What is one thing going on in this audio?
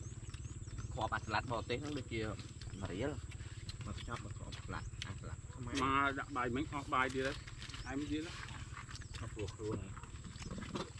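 Men talk casually nearby, outdoors.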